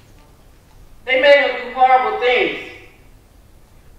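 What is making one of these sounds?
A woman sings a short, wailing phrase through a headset microphone in a large hall.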